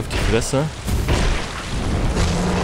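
A burst of flames roars loudly.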